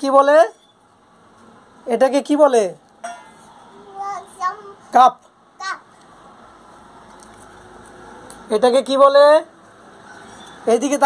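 A young child talks and calls out in a high, animated voice close by.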